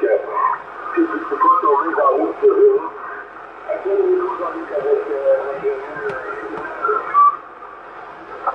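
A radio receiver hisses and crackles with static.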